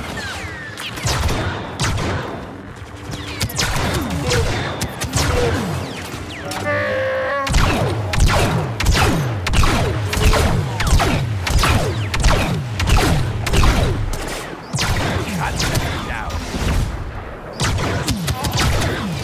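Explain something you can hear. Lightsabers hum and clash.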